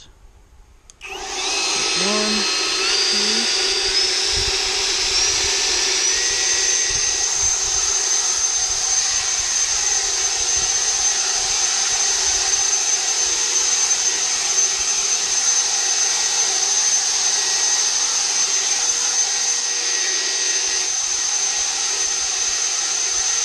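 A battery leaf blower whirs up to a steady high whine.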